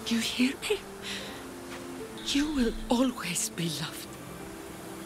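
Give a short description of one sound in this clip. A baby coos and babbles up close.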